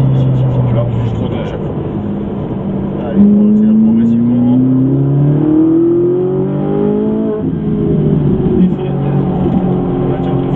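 A sports car engine roars, rising steadily in pitch as the car accelerates.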